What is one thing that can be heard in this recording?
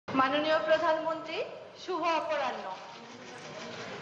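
A woman speaks clearly through a microphone.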